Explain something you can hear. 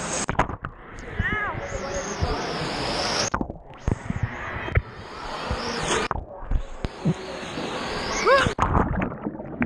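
Water splashes and churns loudly around the listener.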